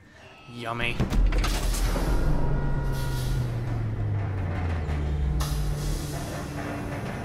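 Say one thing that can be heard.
A heavy metal door rumbles open with a deep, falling groan.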